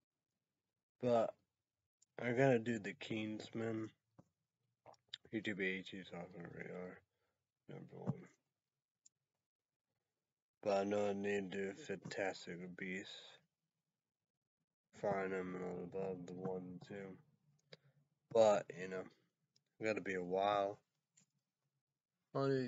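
A man talks calmly and close by, in short bursts with pauses.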